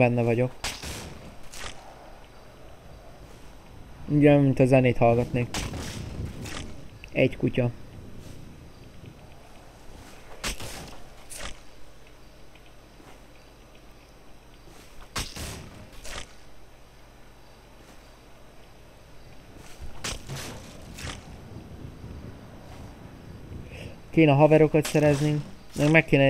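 An axe chops into a tree trunk with sharp, repeated thuds.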